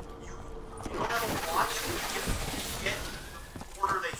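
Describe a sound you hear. A fiery explosion roars and crackles.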